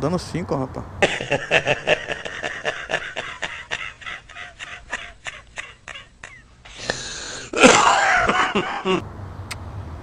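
An elderly man laughs heartily and loudly.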